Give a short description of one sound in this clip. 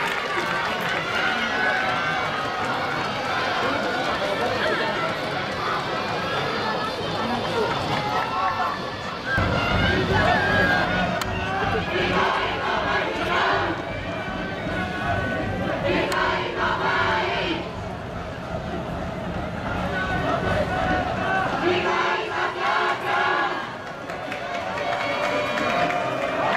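A crowd of people chatters and calls out nearby.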